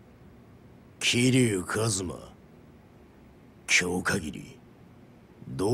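A middle-aged man speaks firmly in a deep voice, close by.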